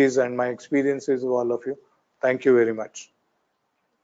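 A middle-aged man speaks calmly into a clip-on microphone.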